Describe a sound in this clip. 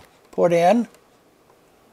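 A button clicks softly.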